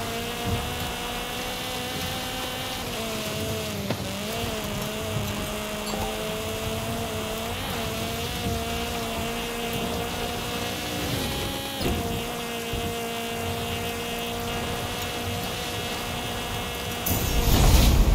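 A rally car engine drones at high speed.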